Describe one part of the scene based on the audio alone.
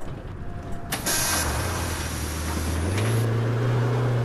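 Bus air brakes hiss loudly.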